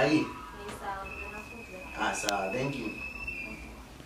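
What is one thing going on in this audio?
A young man talks calmly on a phone close by.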